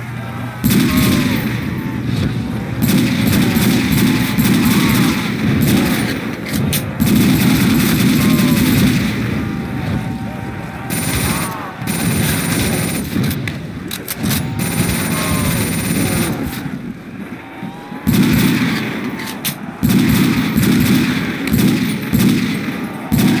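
Zombies growl and snarl.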